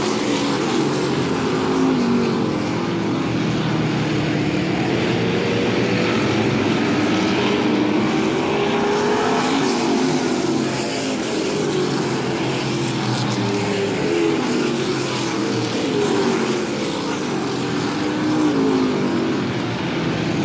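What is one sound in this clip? Race car engines roar loudly as a pack of cars speeds around a track.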